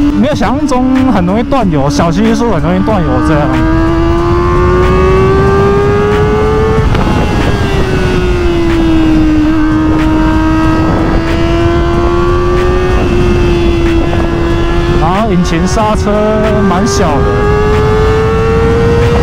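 A motorcycle engine hums loudly, rising and falling in pitch as it speeds up and slows down.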